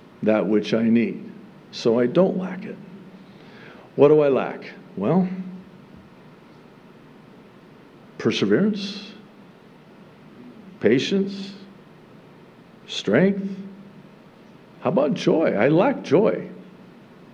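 A middle-aged man speaks calmly into a microphone in short phrases with pauses, in a room with a slight echo.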